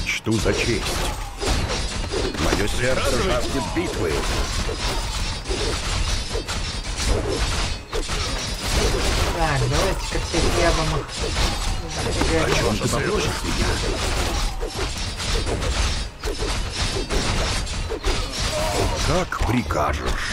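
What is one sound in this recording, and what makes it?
Swords clash and clang.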